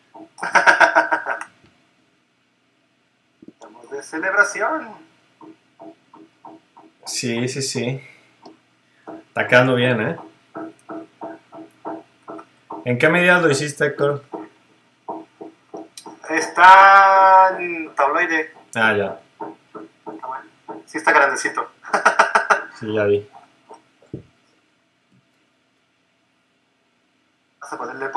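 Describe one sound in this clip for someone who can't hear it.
A young man talks animatedly and close to a microphone, with pauses.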